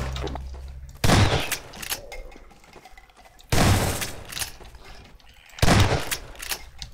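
A shotgun fires loud blasts in an echoing tunnel.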